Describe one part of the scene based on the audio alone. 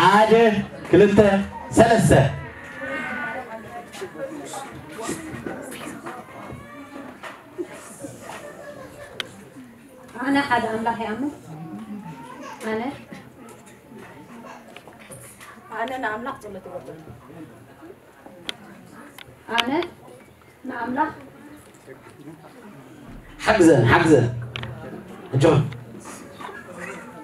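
A young man speaks into a microphone with animation, heard through a loudspeaker in a room.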